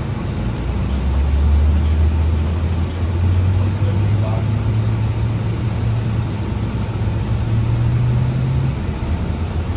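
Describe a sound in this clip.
A bus engine rises in pitch as it speeds up.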